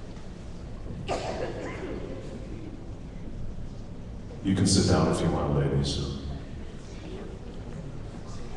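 A man speaks through a microphone and loudspeaker in an echoing hall.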